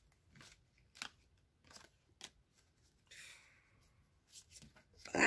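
Small objects click and rustle softly in a woman's hands.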